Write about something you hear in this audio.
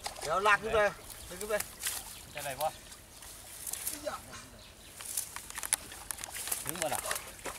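Water sloshes and splashes around a person wading.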